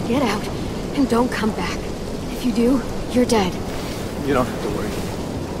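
A young woman speaks sternly and threateningly, close by.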